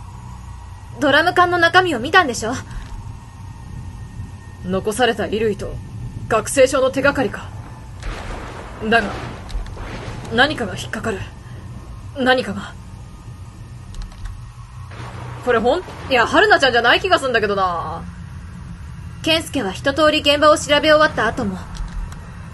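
A young woman speaks animatedly into a close microphone.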